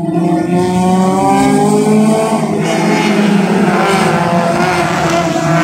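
Racing car engines roar steadily in the distance.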